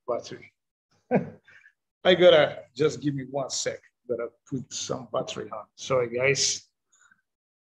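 A middle-aged man talks and laughs with animation over an online call.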